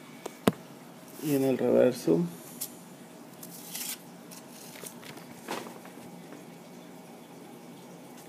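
A paper banknote rustles and crinkles as a hand handles it.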